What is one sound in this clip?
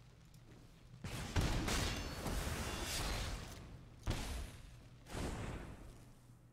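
Digital game sound effects whoosh and crackle in loud bursts.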